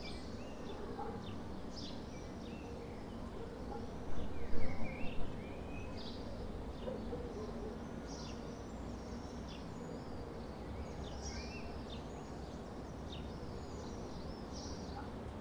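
Small birds chirp and twitter outdoors.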